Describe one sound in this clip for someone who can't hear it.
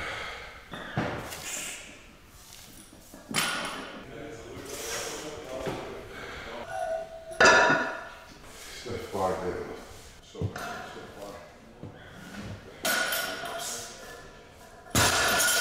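Weight plates on a barbell clank against the floor.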